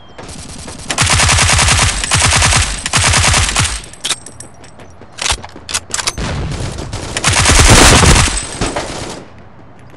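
A rifle fires rapid bursts of automatic gunfire.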